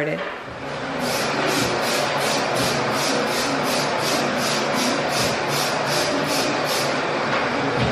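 A spray bottle sprays in quick repeated bursts.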